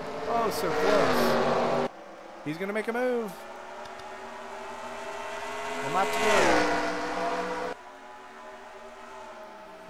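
Racing car engines roar at high revs, rising and falling in pitch as cars pass by.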